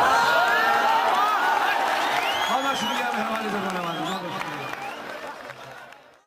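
A man sings with feeling through a microphone and loudspeakers.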